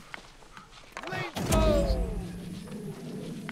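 A loud magical burst booms and rings out.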